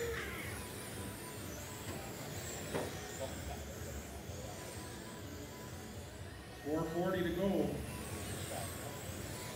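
Small electric racing cars whine as they speed past.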